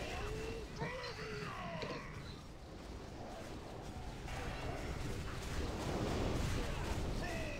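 Game spell effects crackle and whoosh.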